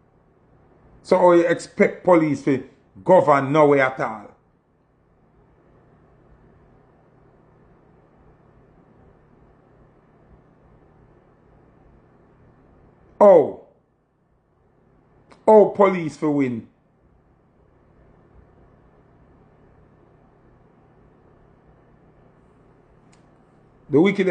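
A young man speaks calmly and close to a phone microphone, in short bursts with pauses.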